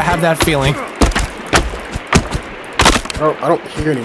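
Wood cracks and logs clatter to the ground.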